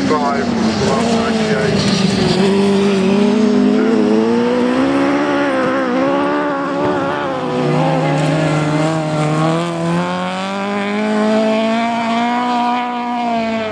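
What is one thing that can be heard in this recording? Tyres skid and scrabble on loose dirt.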